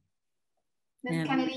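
A woman speaks brightly through an online call.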